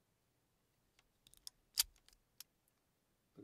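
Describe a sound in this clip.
Small plastic pieces click and tap against each other.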